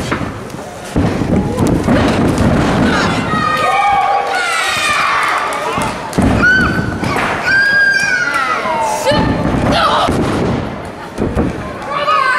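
Bodies slam heavily onto a wrestling ring mat, echoing in a large hall.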